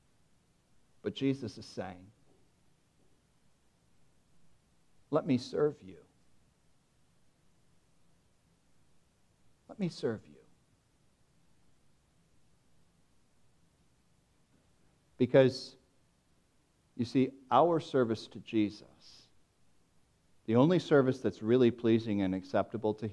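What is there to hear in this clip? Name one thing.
A man speaks slowly and deliberately into a microphone, with long pauses.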